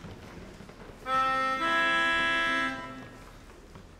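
A small electronic keyboard plays a steady chord.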